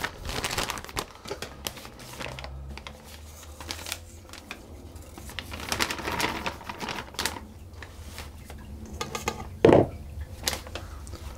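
A metal spoon scrapes against a metal bowl.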